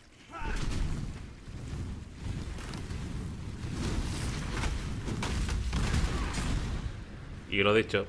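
Magic blasts crackle and boom in quick succession.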